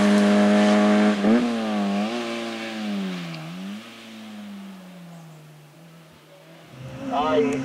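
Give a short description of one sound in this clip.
A racing car engine roars away at high revs and fades into the distance.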